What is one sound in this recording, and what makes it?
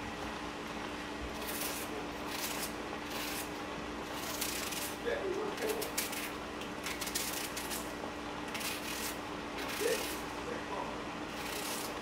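A knife slices through an onion with soft, crisp cuts.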